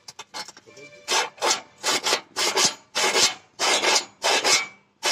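A hammer chips at metal with sharp knocks.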